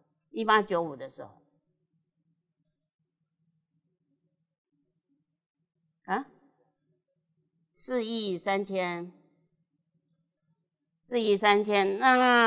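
An elderly woman speaks calmly into a microphone, pausing between phrases.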